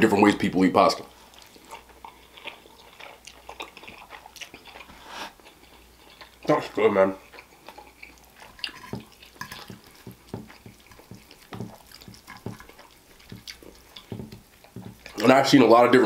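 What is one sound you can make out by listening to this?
A man chews and slurps noodles loudly.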